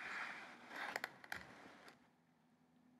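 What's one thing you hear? Hands thump down onto a wooden floor.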